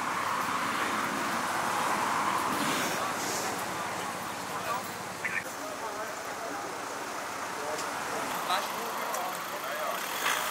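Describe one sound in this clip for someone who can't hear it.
Traffic roars past steadily on a nearby road.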